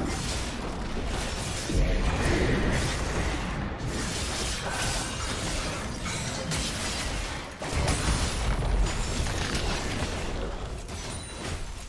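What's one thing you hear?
Video game spell effects crash and boom repeatedly in a busy battle.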